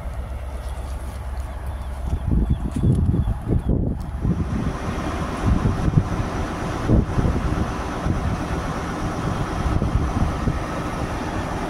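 A diesel train engine rumbles loudly nearby.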